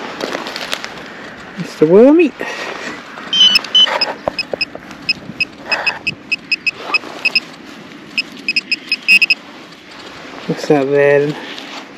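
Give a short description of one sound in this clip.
Soil crumbles and rustles under gloved hands digging in dry grass.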